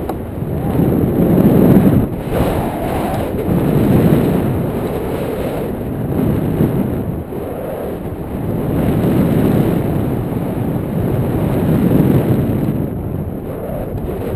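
Strong wind rushes and buffets loudly past a microphone high in open air.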